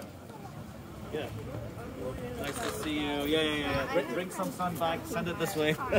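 Adult men and women chat nearby in a small outdoor crowd.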